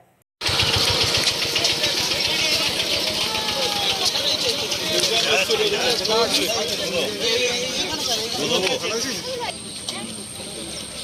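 A crowd of men talk over one another outdoors.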